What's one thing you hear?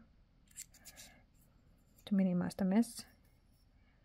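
Paper rustles under a hand.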